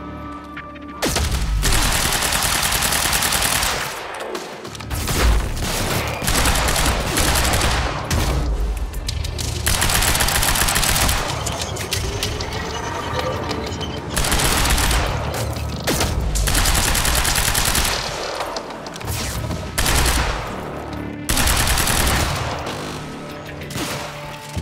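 Automatic rifles fire in loud, rapid bursts.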